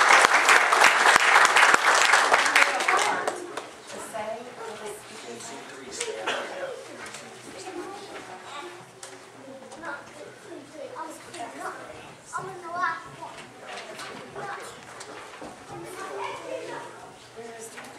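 Children and adults chatter and murmur nearby.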